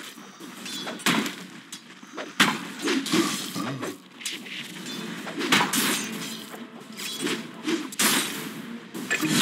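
Spell effects burst and crackle in a game battle.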